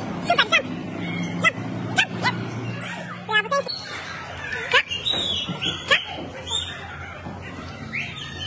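A young boy speaks loudly up close.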